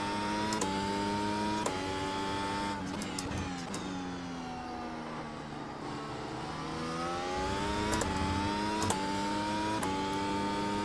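A gear shift clicks sharply with each change.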